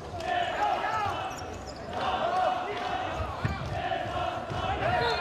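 Sneakers squeak on an indoor court floor.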